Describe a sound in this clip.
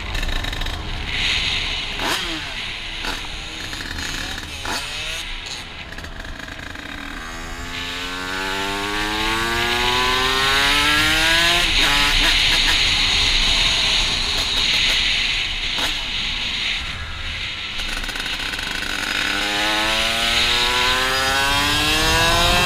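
A small motorbike engine revs up and down close by.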